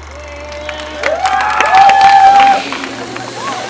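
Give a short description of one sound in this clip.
People in a crowd clap their hands.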